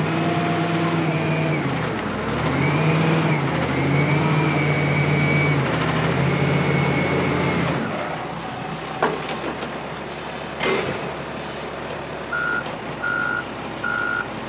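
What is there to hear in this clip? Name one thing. A heavy loader's diesel engine roars and revs loudly, then settles to a lower idle.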